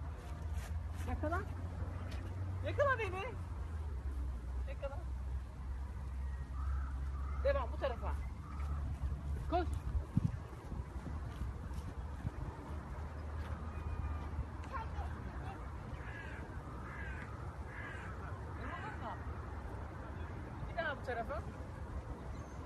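A little girl squeals and shouts excitedly nearby.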